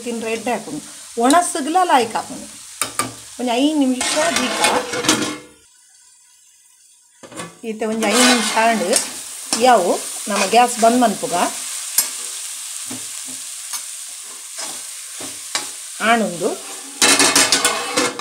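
A metal spoon scrapes and stirs food in a pan.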